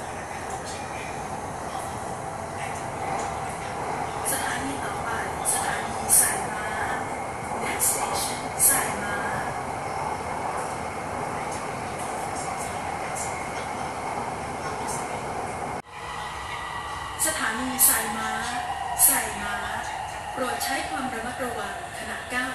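A train rumbles steadily along, heard from inside a carriage.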